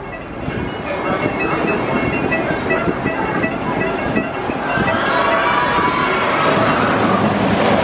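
A roller coaster train clatters up a wooden track.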